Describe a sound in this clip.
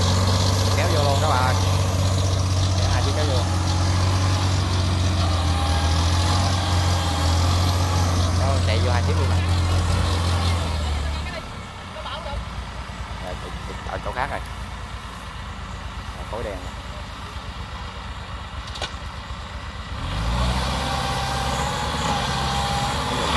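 A single-cylinder diesel mini rice tractor engine chugs.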